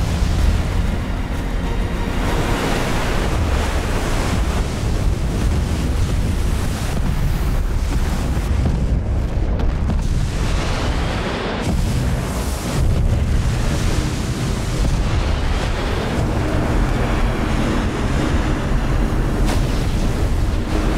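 A huge ocean wave roars and crashes.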